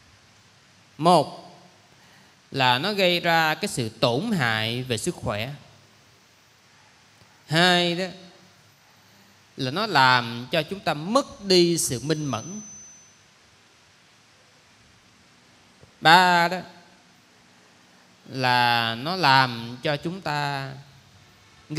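A young man speaks calmly into a microphone, with pauses between phrases.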